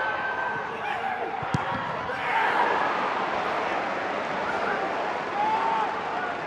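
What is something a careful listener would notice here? A crowd roars and cheers in a large open stadium.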